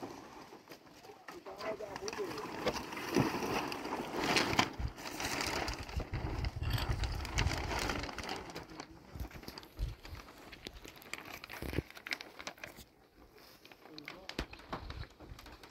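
A large plastic sheet rustles and crackles as it is shaken.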